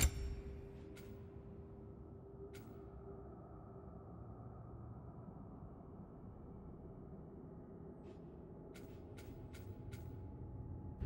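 Short interface clicks tick as a menu selection moves.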